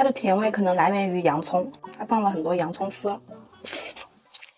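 A young woman speaks calmly and softly close to a microphone.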